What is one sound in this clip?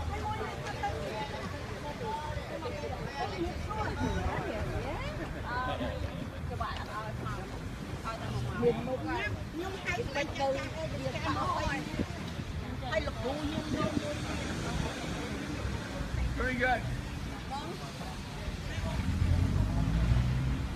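A crowd of men and women chatter outdoors nearby.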